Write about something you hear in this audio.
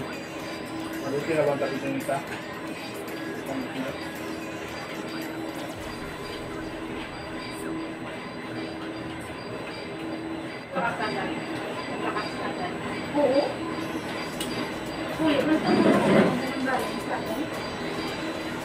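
Adults talk and chat casually nearby.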